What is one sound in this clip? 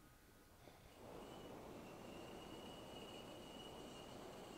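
A hot-air balloon burner roars steadily.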